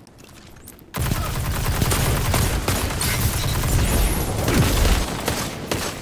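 An energy weapon blasts with a loud crackling burst.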